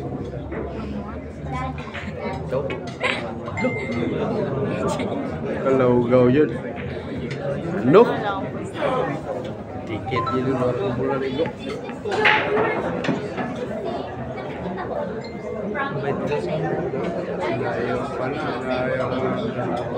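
A crowd of people chatter and murmur in a busy, echoing room.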